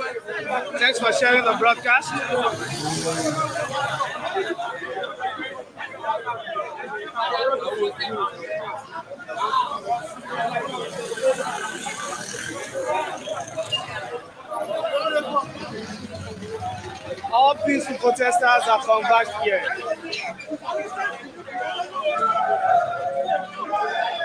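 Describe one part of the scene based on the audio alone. A crowd of men chants and shouts loudly outdoors.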